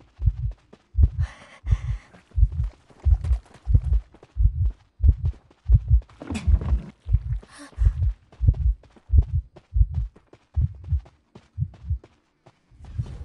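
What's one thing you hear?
Heavy footsteps thud in a quick, steady rhythm.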